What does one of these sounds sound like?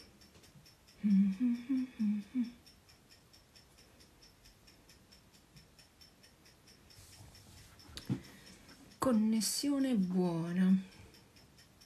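A woman speaks briefly and calmly, close to a microphone.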